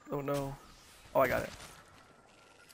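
A man speaks loudly into a microphone with animation.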